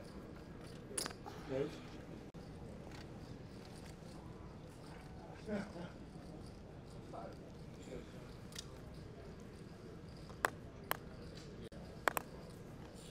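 Poker chips click together on a table.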